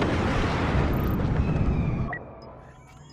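A battle rages with loud blasts and rumbling.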